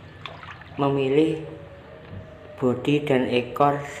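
A net swishes through water.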